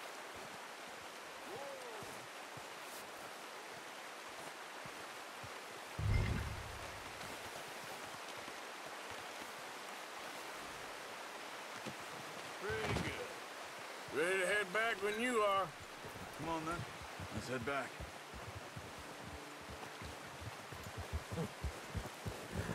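A shallow rocky stream gurgles and rushes.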